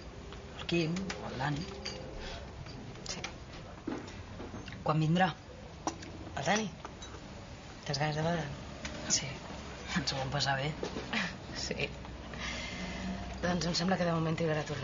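A woman talks calmly and warmly, close by.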